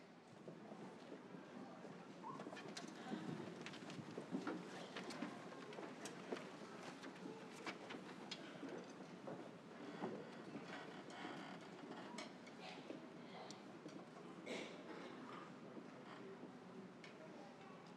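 Chairs scrape and knock as a group of musicians sit down.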